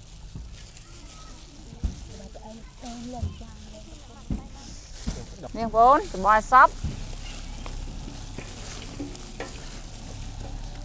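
Hands toss and squish soft noodles, rustling and squelching.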